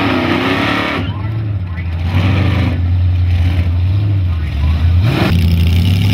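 A race car engine idles with a deep, loping rumble close by.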